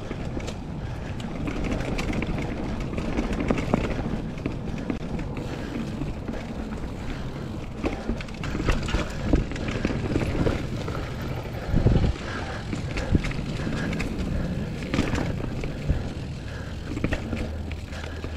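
Wind rumbles past while riding outdoors.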